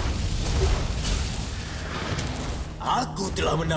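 Game battle effects clash and whoosh.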